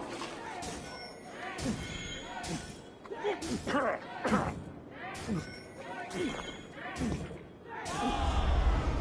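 A small crowd of men and women cheer and shout excitedly close by.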